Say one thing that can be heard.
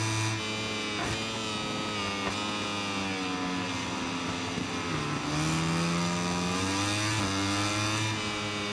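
A motorcycle engine whines loudly, revving up and down as gears shift.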